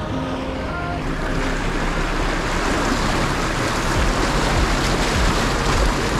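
Water sprays and rushes loudly against a vehicle's wheels.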